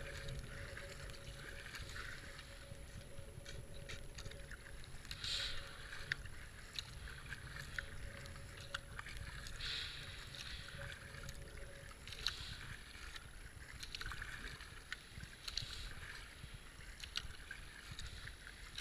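A paddle splashes rhythmically through water.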